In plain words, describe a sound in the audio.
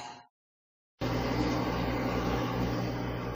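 A washing machine hums steadily as its drum turns.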